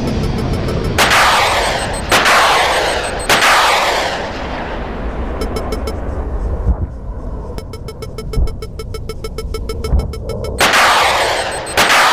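Missiles launch with a sharp roaring whoosh.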